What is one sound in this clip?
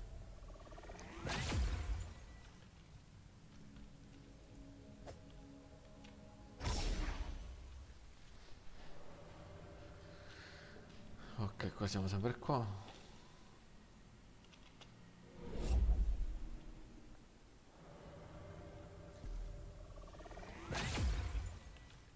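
A bright magical whoosh swells and fades.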